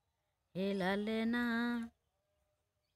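A young woman sings a short phrase close to a phone microphone.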